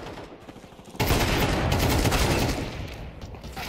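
A rifle fires rapid shots.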